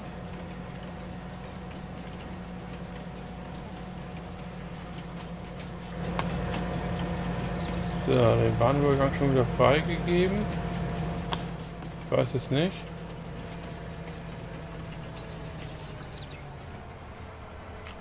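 A diesel locomotive engine rumbles steadily and then winds down as the train slows.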